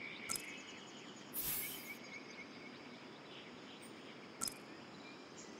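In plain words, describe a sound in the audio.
Short game menu clicks sound.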